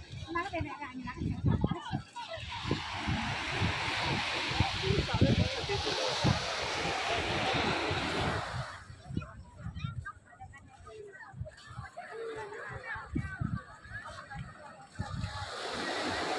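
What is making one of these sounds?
A crowd of people chatter in the distance outdoors.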